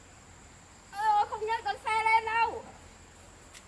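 A woman calls out loudly nearby.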